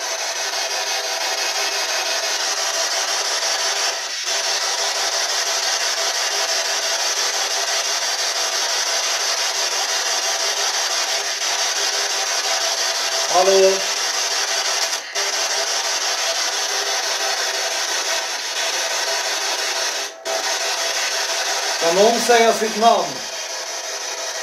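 A handheld device hisses with steady static.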